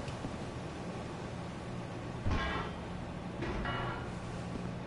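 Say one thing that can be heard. A heavy metal lever clanks as it is pulled.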